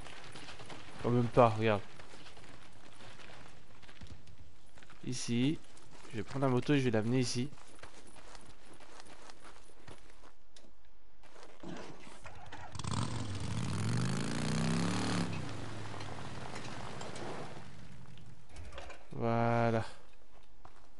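A young man talks into a microphone in short bursts.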